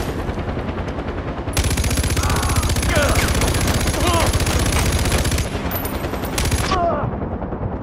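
A helicopter's rotor thumps steadily nearby.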